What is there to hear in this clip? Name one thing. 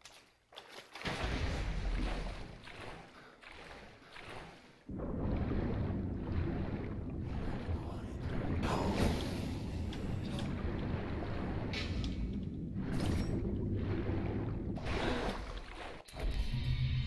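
Water splashes and sloshes as someone swims.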